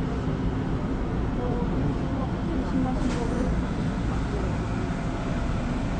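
A young man speaks quietly close to a phone microphone.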